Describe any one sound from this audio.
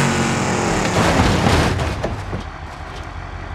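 A car's metal body crunches and scrapes against wood.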